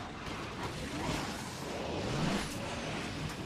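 A boost whooshes loudly and rises.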